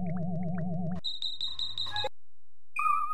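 A short game jingle chimes for a completed level.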